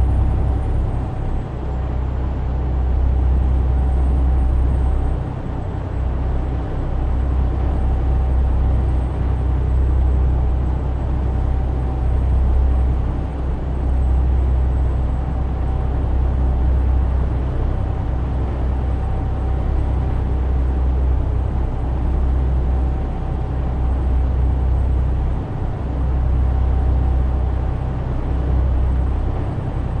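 A truck's diesel engine drones low and steady as it drives.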